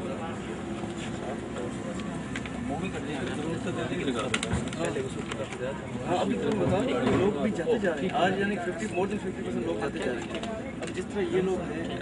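Several men talk over one another with animation nearby.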